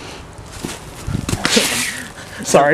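Footsteps rustle through dry leaves.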